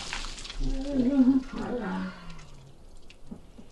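A young woman squeals and laughs loudly close by.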